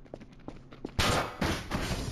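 Footsteps clank on a metal grate floor.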